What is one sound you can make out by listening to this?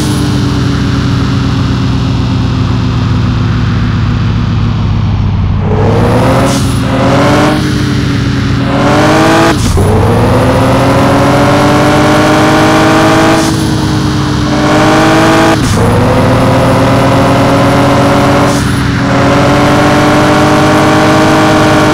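A car engine revs up and drops in pitch with each gear change.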